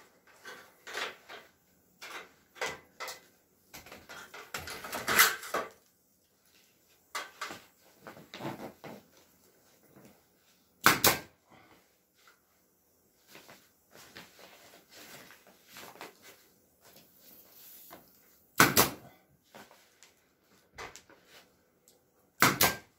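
Foil ducting crinkles and rustles as it is handled.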